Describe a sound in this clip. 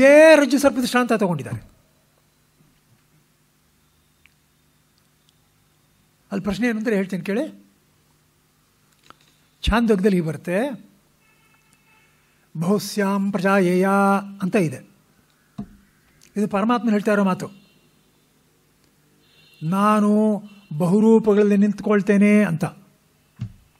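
An elderly man chants in short, drawn-out phrases with pauses between them.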